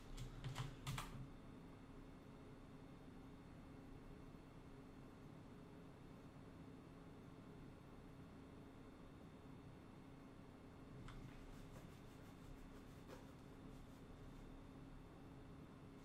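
A keyboard clicks with steady typing close by.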